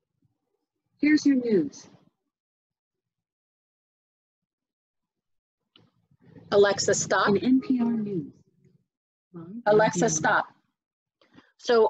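A woman speaks calmly into a microphone in short bursts, heard through an online call.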